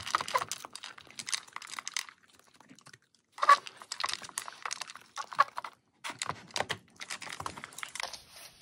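A dog crunches dry kibble close by.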